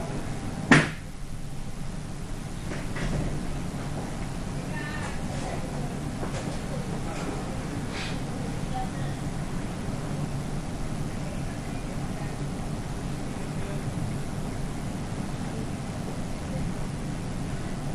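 An elderly woman talks softly with people nearby.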